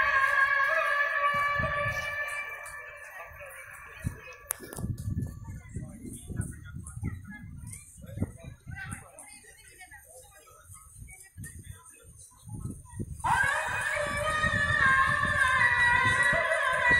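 A man chants through distant loudspeakers, echoing across the street.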